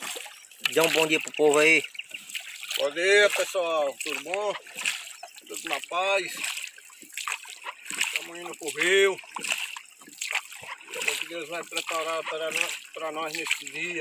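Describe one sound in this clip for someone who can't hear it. Oars splash and dip in the water.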